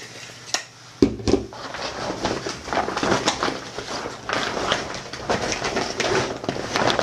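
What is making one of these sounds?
A bag's fabric rustles and crinkles as it is handled.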